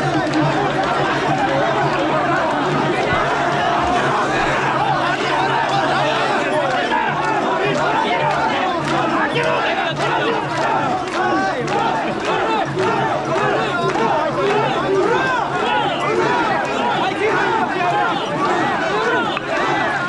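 Wooden clappers knock together sharply.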